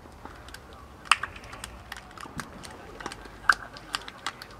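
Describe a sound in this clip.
Players slap hands as they shake hands.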